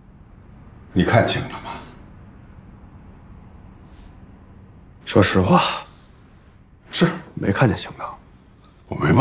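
A young man speaks quietly and calmly.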